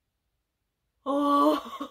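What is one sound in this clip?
A young woman exclaims with animation, close to the microphone.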